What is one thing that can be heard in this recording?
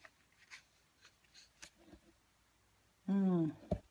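A sheet of paper rustles as it is lifted.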